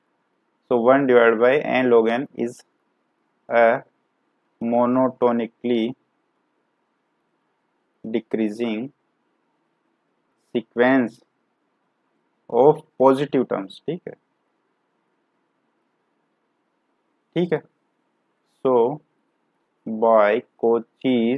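A man speaks calmly into a close microphone, pausing often.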